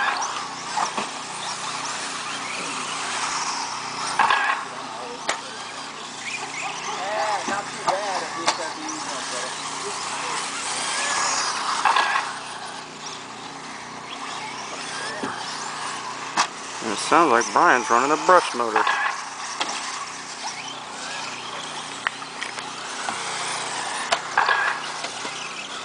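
Small electric model cars whine as they race over dirt.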